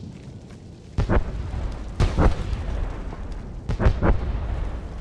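Explosions boom and crackle nearby.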